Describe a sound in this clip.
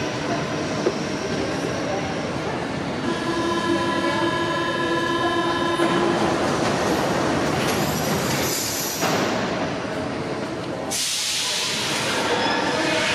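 A stopped train hums steadily in a large echoing hall.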